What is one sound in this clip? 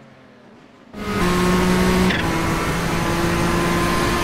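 A racing car engine drones loudly and steadily from very close.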